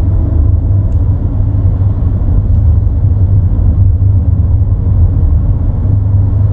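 Tyres roll steadily on the road.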